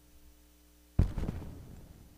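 A microphone thumps as it is handled.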